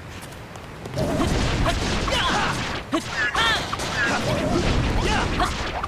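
Fire bursts crackle and roar in the game.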